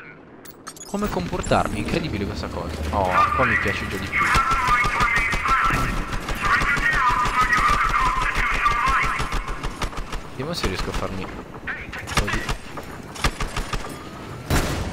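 Machine gun fire rattles rapidly.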